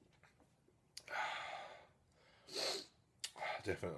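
A man exhales with satisfaction.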